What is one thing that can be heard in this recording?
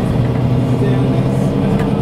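A bus engine rumbles as the bus passes close by.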